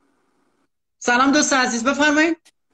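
A young woman speaks loudly and with animation over an online call.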